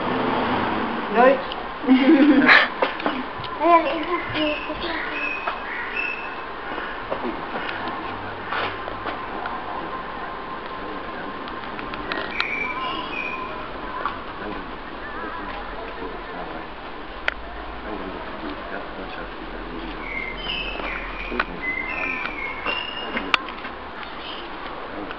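Men and women chat and laugh close by.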